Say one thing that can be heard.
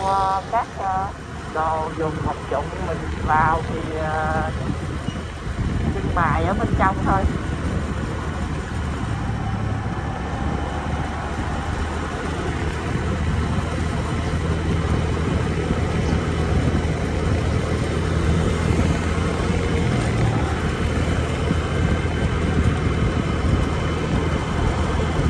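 Tyres roll on a smooth road.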